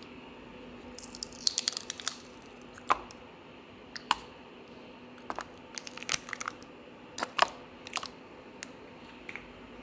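Jelly cups are peeled open and drop with soft thuds into a paper cup.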